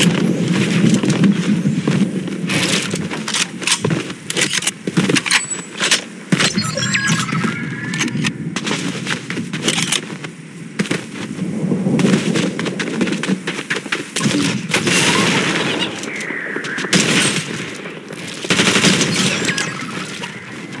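Wooden walls are built with sharp knocks.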